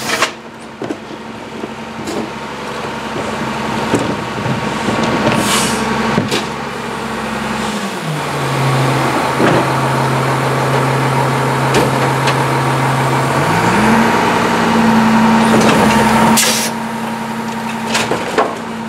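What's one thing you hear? A diesel garbage truck engine idles and revs.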